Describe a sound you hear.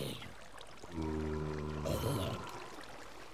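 A zombie groans low and hoarsely.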